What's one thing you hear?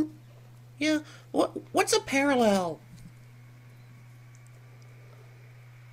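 A dog chews and gnaws on a rubber toy.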